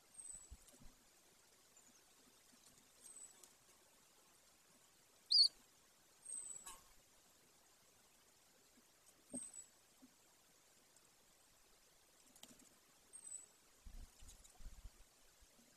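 A large bird tears at prey with soft rustling and tugging.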